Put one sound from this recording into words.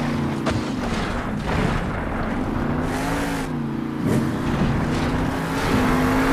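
Heavy tyres thump and skid on dirt.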